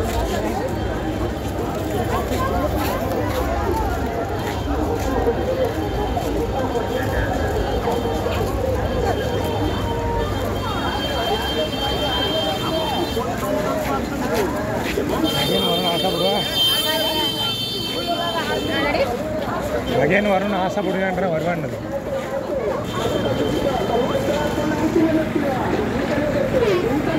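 A crowd of men and women chatters all around outdoors.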